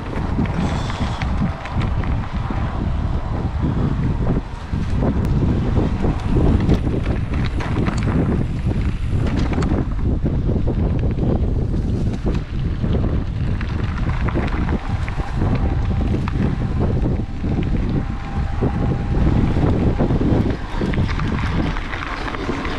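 Bicycle tyres crunch and rattle over a bumpy dirt track.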